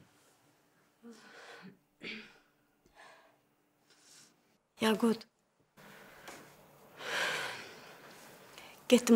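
A woman speaks quietly and sadly, close by.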